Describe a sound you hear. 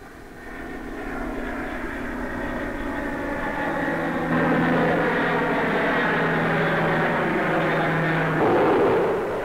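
A jet engine roars steadily overhead as an aircraft flies by.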